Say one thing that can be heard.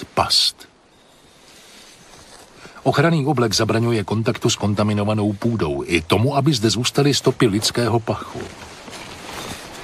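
A trowel scrapes and digs into sandy soil.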